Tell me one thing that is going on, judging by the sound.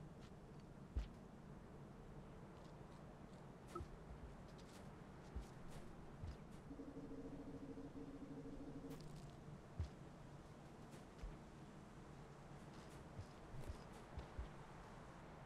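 A small creature lands with soft, dull thumps now and then.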